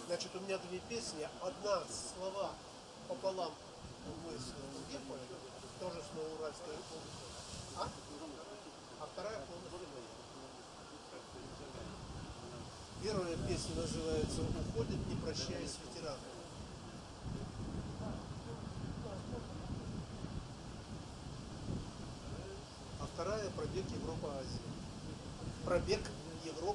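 An elderly man speaks calmly into a microphone, heard through loudspeakers outdoors.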